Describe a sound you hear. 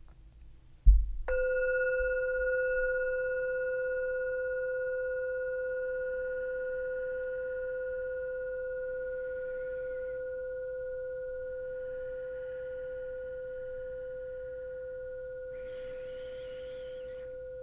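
A singing bowl is struck once and rings with a long, slowly fading tone.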